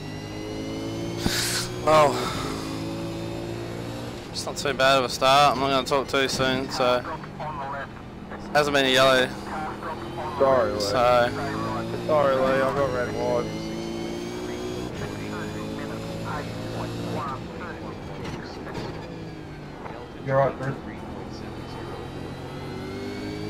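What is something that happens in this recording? A racing car engine roars steadily.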